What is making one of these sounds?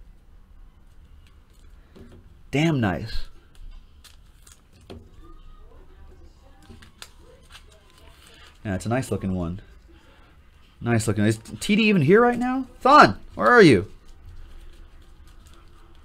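Trading cards rustle and slide against a table.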